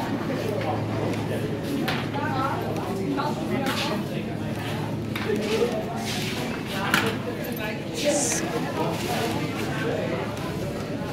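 A plastic shopping cart rattles as its wheels roll over a hard floor.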